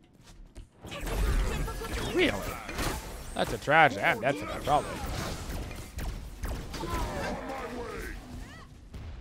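Magic blasts and hits crackle in a fast fight.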